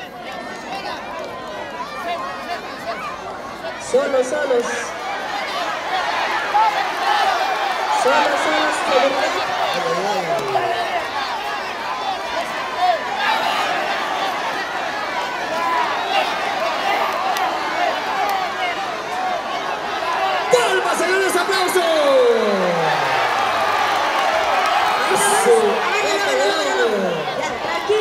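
A large outdoor crowd shouts and cheers loudly throughout.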